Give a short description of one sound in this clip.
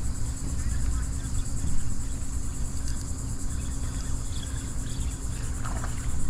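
A fishing reel whirs as its line is reeled in.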